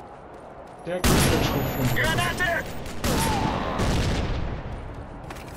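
Gunfire crackles in rapid bursts.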